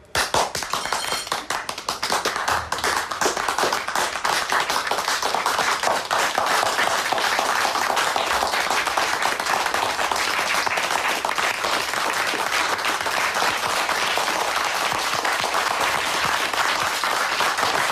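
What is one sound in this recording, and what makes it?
A crowd of men claps and applauds loudly.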